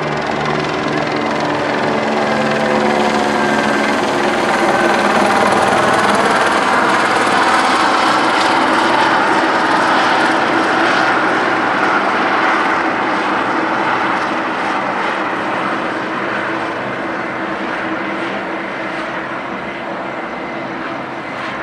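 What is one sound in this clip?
Traffic rumbles along a city street.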